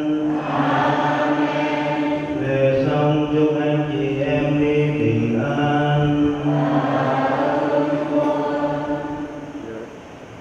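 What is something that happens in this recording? A man chants in a slow, steady voice through a microphone in a large echoing hall.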